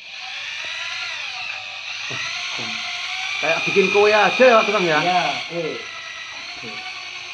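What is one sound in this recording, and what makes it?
A power mixer whirs steadily as it stirs a bucket.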